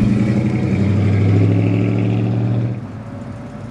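A car engine rumbles deeply as the car drives past.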